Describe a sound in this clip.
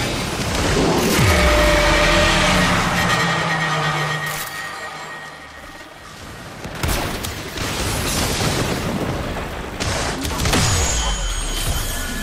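Heavy impacts boom with deep rumbling.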